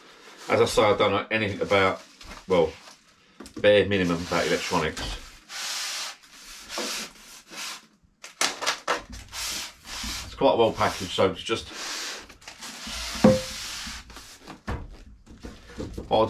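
Cardboard boxes rustle and thump as they are handled.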